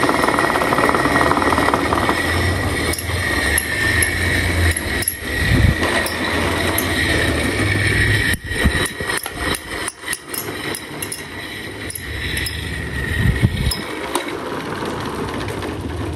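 Several electric fans whir and hum steadily up close.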